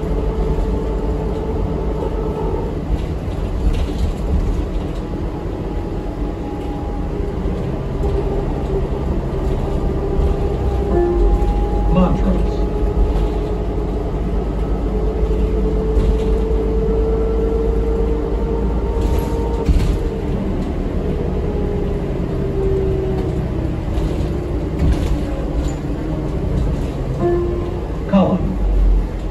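A bus engine hums and drones steadily while the bus drives.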